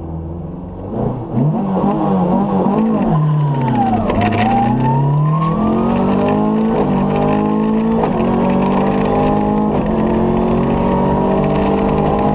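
A rally car engine roars and revs up hard, rising and dropping in pitch as it shifts through gears.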